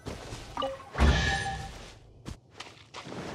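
A magical chime rings out with a bright shimmer.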